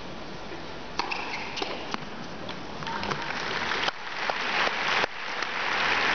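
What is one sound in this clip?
A tennis ball is struck sharply by a racket, echoing in a large hall.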